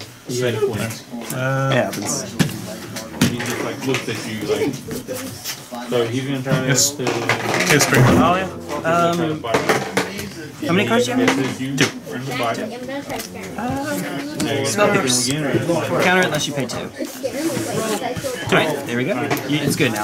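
Playing cards are slapped down and slid across a soft table mat.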